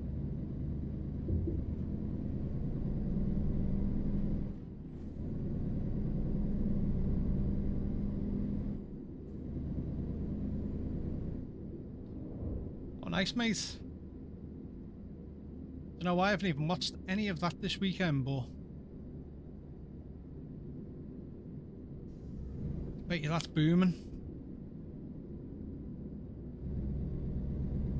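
A truck engine rumbles steadily, rising and falling with speed.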